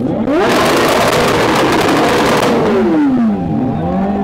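A motorcycle engine roars loudly as it revs up close by.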